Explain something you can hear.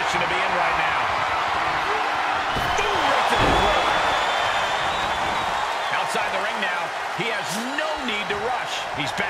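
A large crowd cheers and roars loudly in an echoing arena.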